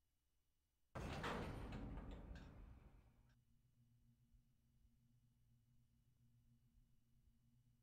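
A train's motor hums low and steady.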